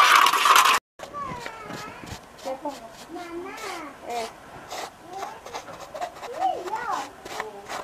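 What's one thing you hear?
A brush scratches across rough plaster.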